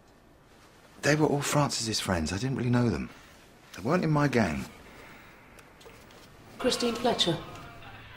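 A young man speaks in a quiet, serious tone nearby.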